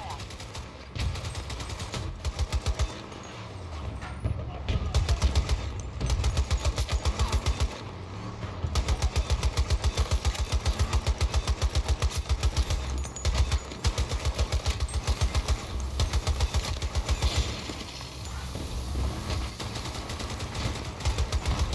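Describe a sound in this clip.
A gun fires in rapid bursts close by.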